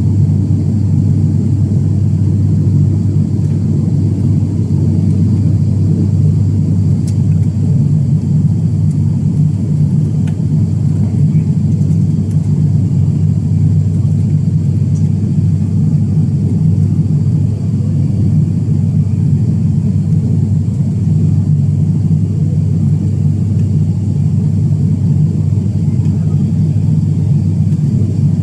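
A propeller aircraft's engines drone loudly and steadily inside the cabin.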